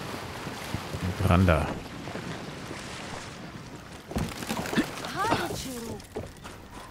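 An adult man talks into a close microphone.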